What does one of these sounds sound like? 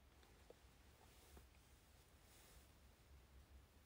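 Hair rustles softly as a hand brushes through it.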